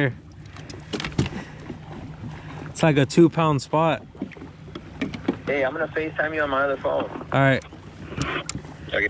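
Small clicks and rattles come from a lure being unhooked from a fish.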